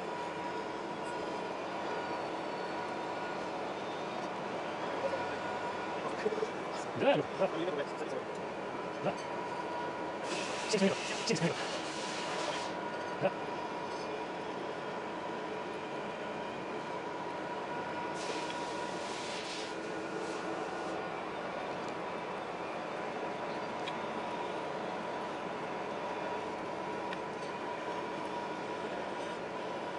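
A metal lathe hums steadily as its chuck spins.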